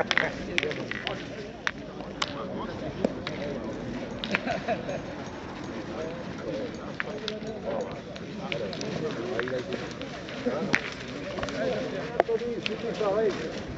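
Metal boules clack sharply against each other.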